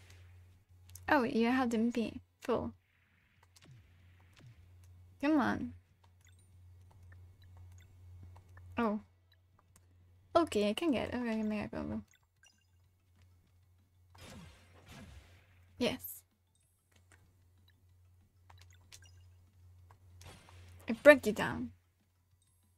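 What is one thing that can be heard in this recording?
A young woman speaks with animation in short bursts, close to a microphone.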